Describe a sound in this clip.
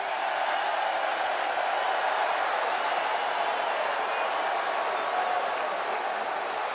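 A large crowd cheers steadily in a big echoing arena.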